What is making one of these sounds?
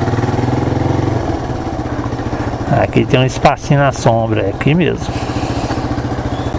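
A motorcycle engine idles and rumbles steadily close by.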